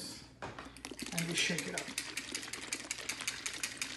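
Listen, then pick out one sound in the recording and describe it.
A liquid sloshes as a shaker bottle is shaken hard.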